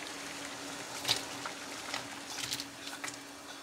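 Onion slices tumble into boiling water.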